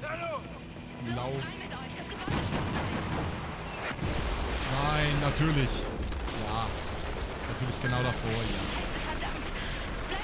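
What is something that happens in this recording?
A helicopter's rotor thumps loudly close by.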